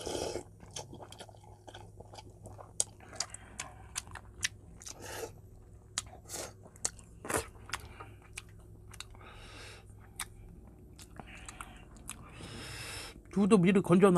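A man slurps and chews food loudly, close by.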